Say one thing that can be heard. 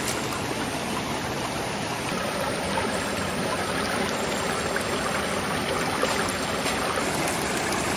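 Shallow water rushes and splashes steadily over a metal sluice and stones.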